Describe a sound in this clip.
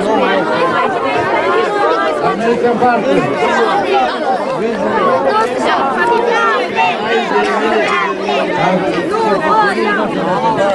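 A crowd of children and adults chatters loudly all around, outdoors.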